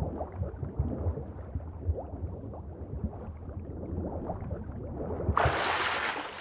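Muffled water rumbles and bubbles underwater.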